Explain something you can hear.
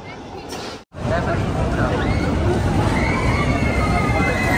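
A roller coaster train rumbles loudly along its track.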